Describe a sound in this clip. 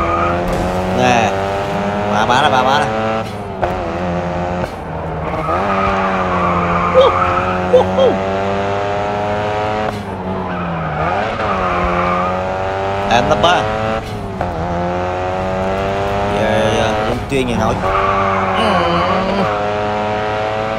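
Tyres screech as a car drifts around corners.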